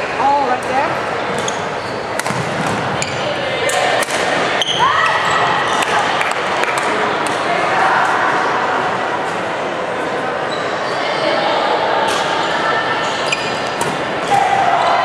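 Many voices chatter and echo in a large hall.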